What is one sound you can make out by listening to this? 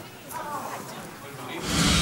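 An elderly woman speaks softly.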